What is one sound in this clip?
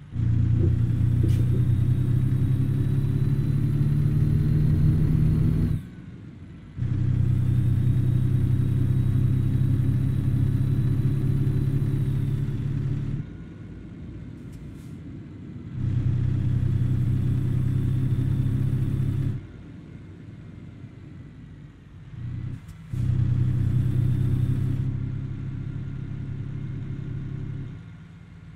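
A truck engine drones low and steady, rising and dropping off in bursts as the driver accelerates and lets off.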